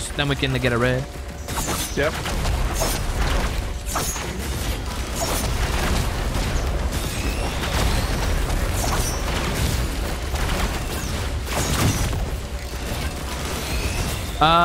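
Game weapons fire and blast in rapid bursts.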